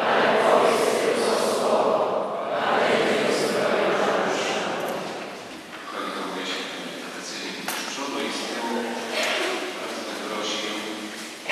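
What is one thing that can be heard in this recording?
A middle-aged man chants into a microphone, echoing through a large hall.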